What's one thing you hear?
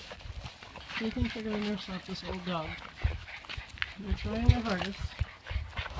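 Puppies whine and squeal up close.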